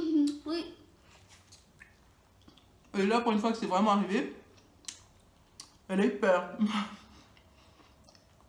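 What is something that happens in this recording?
A young woman chews crisp food.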